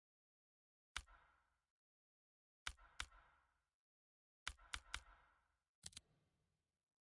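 Short menu clicks and blips sound a few times.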